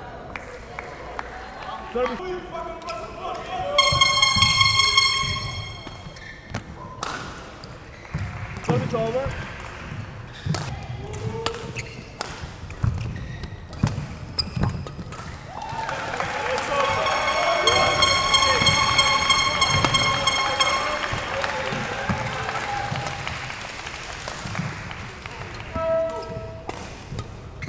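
Rackets strike a shuttlecock in a quick rally.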